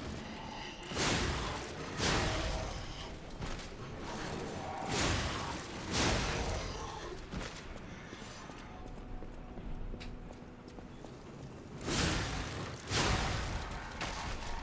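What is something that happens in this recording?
Sword blows clash and slash.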